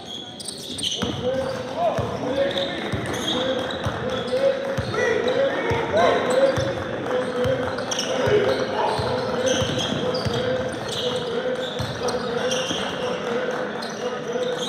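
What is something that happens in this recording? Sneakers squeak sharply on the floor.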